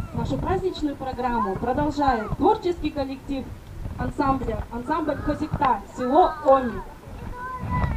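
A woman speaks with animation through a loudspeaker outdoors.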